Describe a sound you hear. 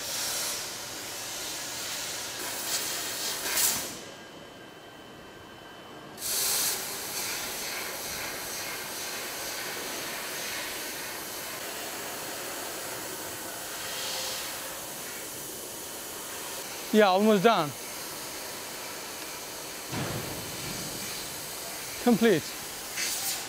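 A laser cutter hisses steadily as it cuts through metal.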